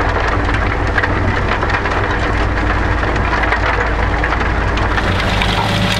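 Soil and clods rattle and crunch against a rotating tiller.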